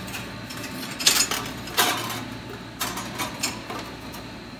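A thin metal sheet scrapes and clatters against a metal grid.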